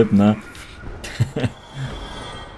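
A sword strikes a body with a heavy thud.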